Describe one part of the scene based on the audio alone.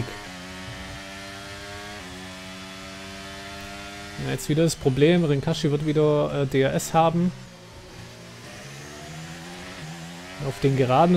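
A racing car engine whines at high revs, changing pitch as it shifts gears.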